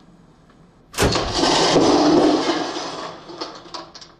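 A metal can crashes and clatters onto a wooden floor.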